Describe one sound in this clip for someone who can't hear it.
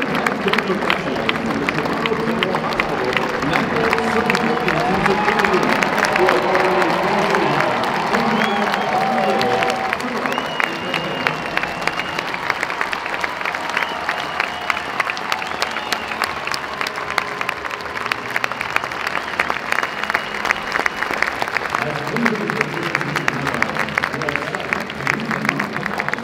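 A large crowd cheers in a big stadium.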